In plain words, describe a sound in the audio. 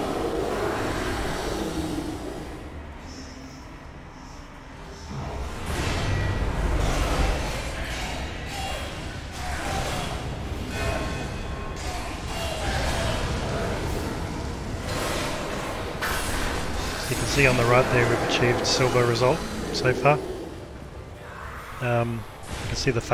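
Weapons clash and strike amid loud magical blasts.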